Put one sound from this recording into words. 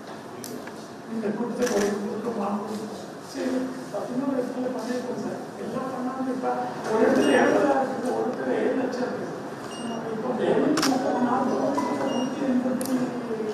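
A man speaks steadily into a microphone, heard through a loudspeaker.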